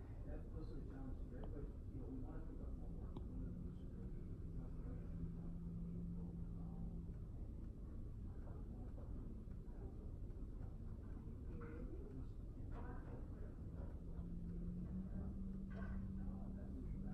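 A stylus taps and scratches softly on a tablet's glass.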